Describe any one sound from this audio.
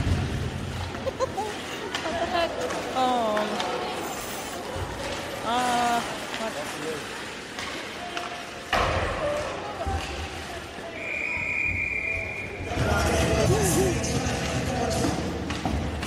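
Spectators shout and cheer nearby.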